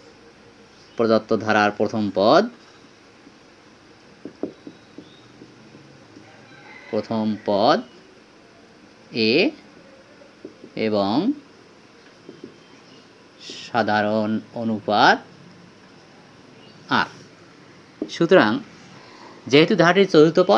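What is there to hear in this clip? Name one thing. A man speaks calmly and clearly in short phrases, close by.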